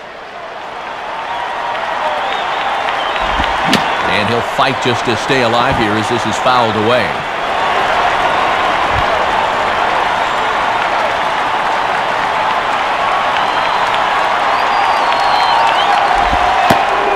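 A crowd murmurs and cheers steadily in a large stadium.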